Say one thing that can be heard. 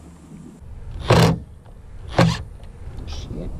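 A cordless driver whirs in short bursts.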